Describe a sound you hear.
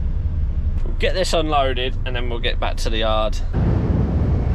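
A man speaks close to the microphone in a relaxed tone.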